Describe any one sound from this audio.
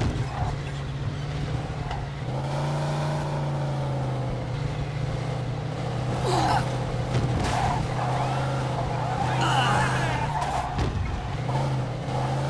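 Tyres roll over paving stones.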